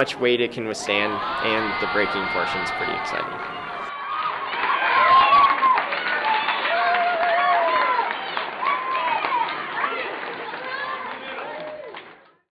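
A crowd of children cheers and screams excitedly in a large echoing room.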